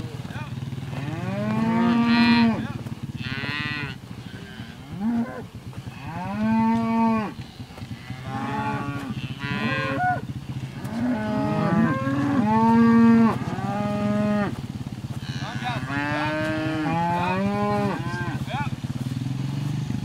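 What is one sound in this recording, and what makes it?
Cattle moo and bellow loudly, many times over.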